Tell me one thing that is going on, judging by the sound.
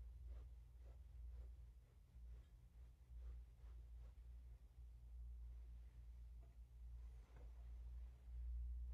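A man chants softly nearby.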